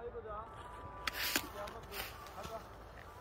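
Skis scrape over packed snow.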